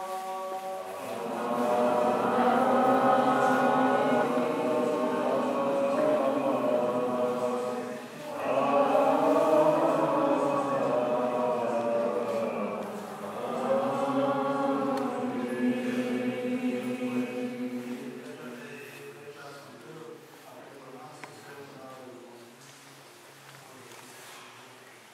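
A man chants in a slow, sustained voice in an echoing hall.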